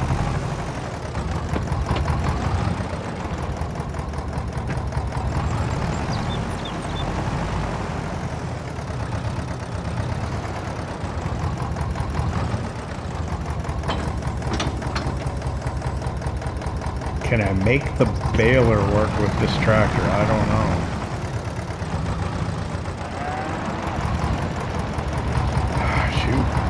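A tractor engine chugs steadily at low speed.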